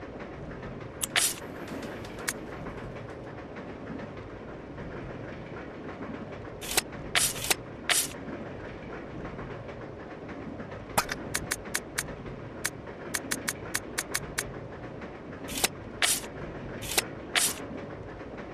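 Short electronic menu clicks and beeps sound, sometimes in quick runs.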